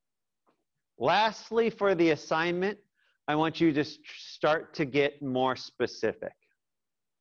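A man speaks calmly into a microphone, heard as if through an online call.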